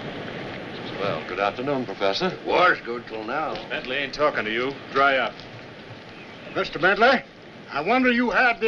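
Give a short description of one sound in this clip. A middle-aged man answers in a low, firm voice.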